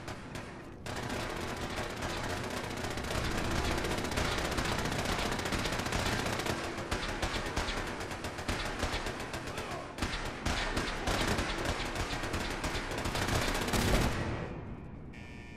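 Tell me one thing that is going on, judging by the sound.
Footsteps tread steadily on a gritty concrete floor.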